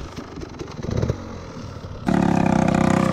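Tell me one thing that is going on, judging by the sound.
A dirt bike engine revs nearby.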